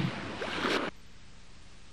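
A jet ski engine hums on the water.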